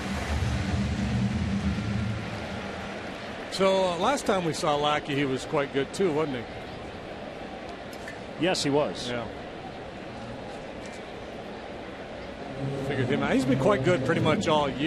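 A large crowd murmurs steadily across a big open stadium.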